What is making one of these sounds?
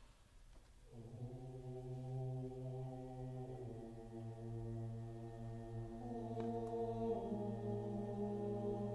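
A mixed choir sings together in a large, echoing hall.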